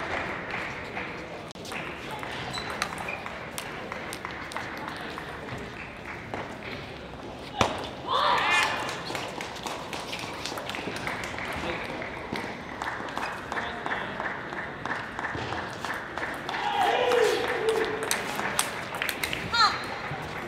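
A table tennis ball clicks back and forth off paddles and the table in a large hall.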